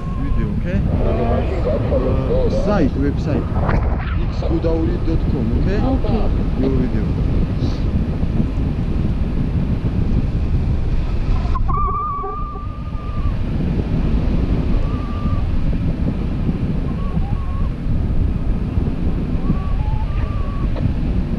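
Wind rushes and buffets loudly against a nearby microphone.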